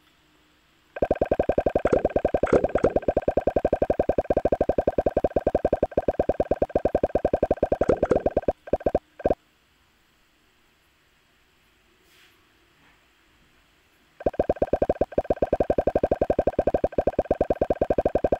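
Rapid electronic ticks and blips patter as game balls bounce off blocks.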